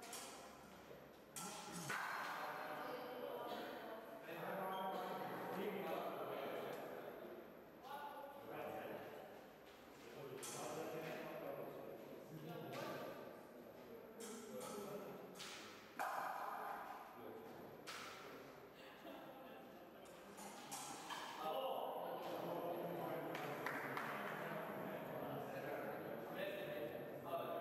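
Voices of a crowd murmur and chatter throughout a large echoing hall.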